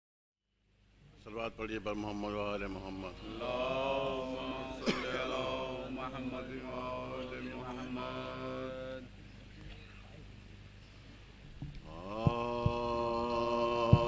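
A man sings a slow lament through a microphone in a large echoing hall.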